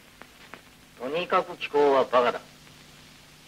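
A man calls out loudly.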